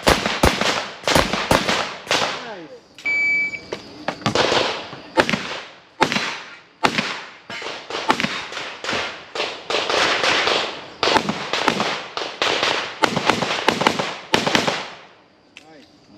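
Pistol shots crack in quick bursts outdoors, each ringing out with a short echo.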